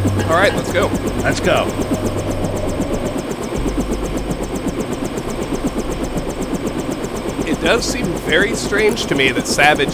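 A helicopter's rotor thumps steadily close by.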